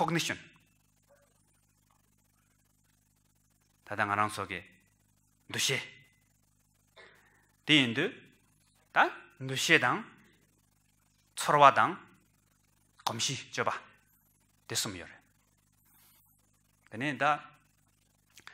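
A man speaks calmly into a microphone, with long pauses between phrases.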